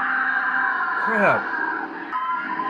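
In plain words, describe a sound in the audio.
A woman screams in terror.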